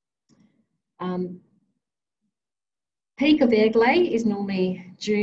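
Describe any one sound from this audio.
A woman speaks calmly through an online call, as if giving a talk.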